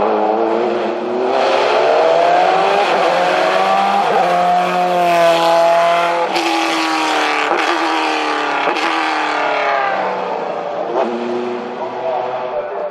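A race car engine revs hard and roars past.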